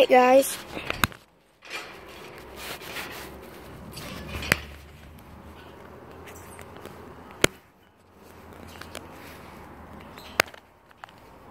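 A phone is handled, with sharp knocks and bumps.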